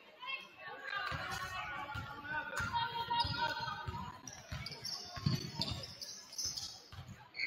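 A basketball bounces on a hard wooden court.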